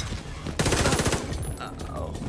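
A rapid burst of gunfire rings out.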